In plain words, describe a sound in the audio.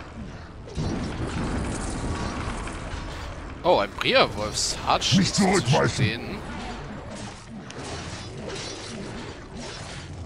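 Weapons clash and clang in a battle.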